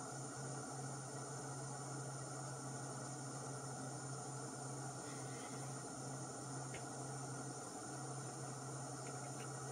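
A small gas burner hisses steadily.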